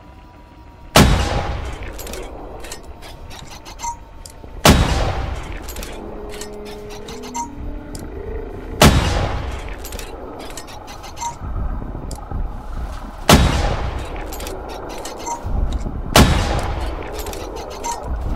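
Laser weapons fire in loud, sudden bursts that boom and fade.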